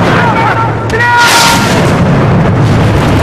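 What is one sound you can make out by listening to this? A loud explosion booms and debris crashes down.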